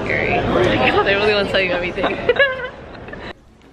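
A young woman squeals and talks excitedly up close.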